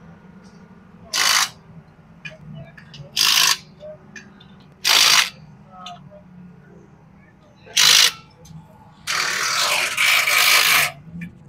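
An impact wrench whirs in short, loud bursts.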